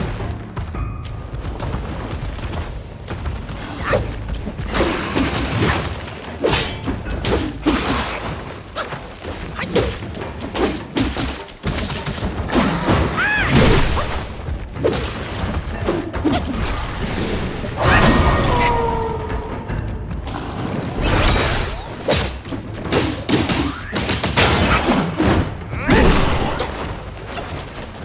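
Heavy paws thud on stone.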